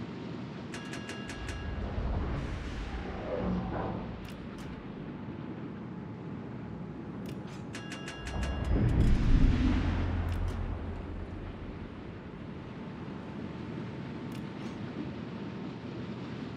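Waves wash and splash against a ship's hull steadily.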